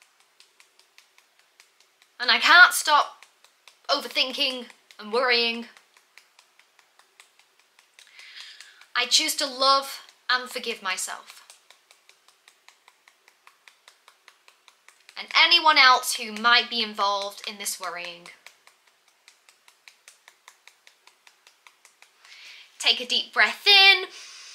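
Fingertips tap softly on the side of a hand.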